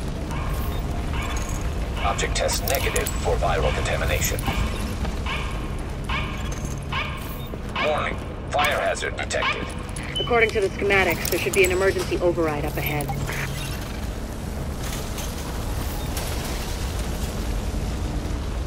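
A fire crackles and roars nearby.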